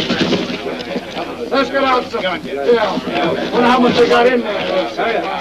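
A man speaks loudly and with animation close by.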